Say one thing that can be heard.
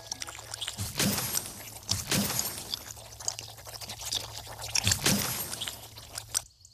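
Game presents burst open with bright sparkling chimes, one after another.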